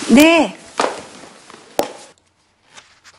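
Clothing rustles as a woman stands up quickly.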